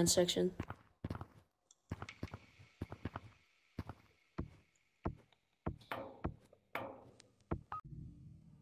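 Footsteps crunch on a stone floor.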